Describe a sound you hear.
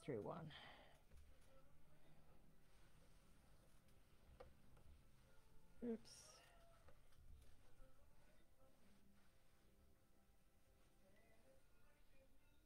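Small beads click softly against each other as they are threaded.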